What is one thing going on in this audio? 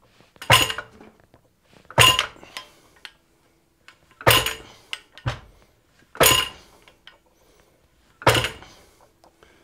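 A power hammer strikes metal with loud, evenly spaced heavy blows.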